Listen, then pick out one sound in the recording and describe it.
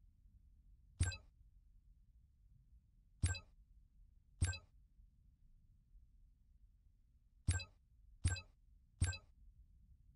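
Short menu clicks chime now and then.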